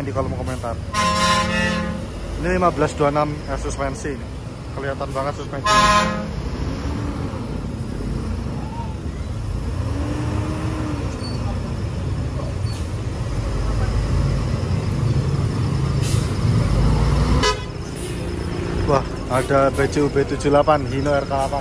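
A bus horn blares loud musical tones in short bursts.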